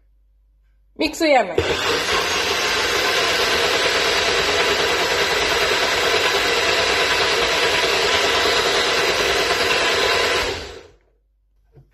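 A blender motor whirs loudly, blending fruit into a smooth drink.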